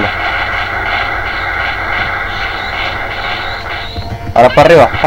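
An energy aura crackles and hums steadily.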